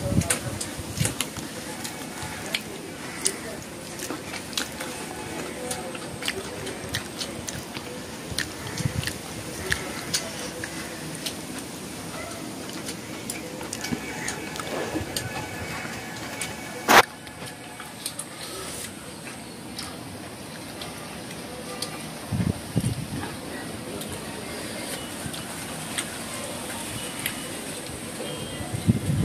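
A woman chews and smacks her lips loudly, close by.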